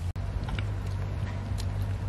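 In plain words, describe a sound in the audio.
Boots squelch through wet mud.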